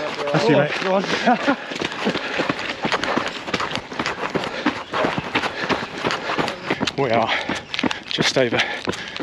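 A man talks breathlessly and close by.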